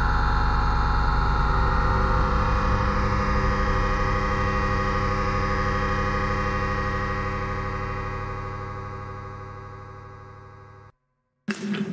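A deep synthesizer drone rings out and slowly fades away.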